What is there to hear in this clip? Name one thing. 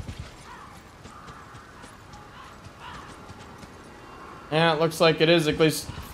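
A horse's hooves clop on rocky ground.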